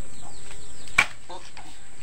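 A long pole knocks against a tree trunk.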